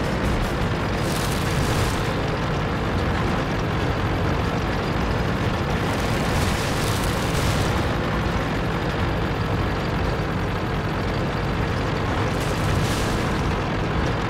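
Leafy branches rustle and crack as a tank pushes through trees.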